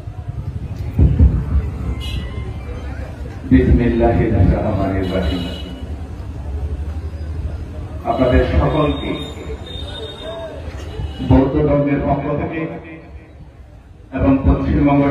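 A man speaks forcefully through a loudspeaker in a large echoing space.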